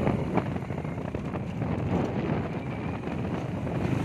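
A motorbike engine hums as it approaches.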